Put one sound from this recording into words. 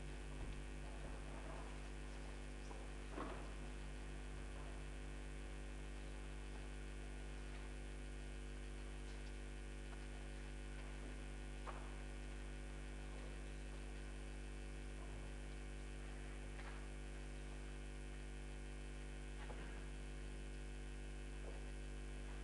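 A steady low electronic drone hums through loudspeakers.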